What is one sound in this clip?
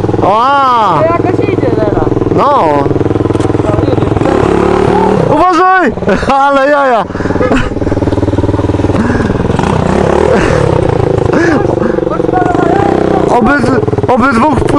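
A motorcycle engine revs up sharply again and again.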